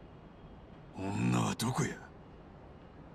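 A man speaks in a low, calm voice, close by.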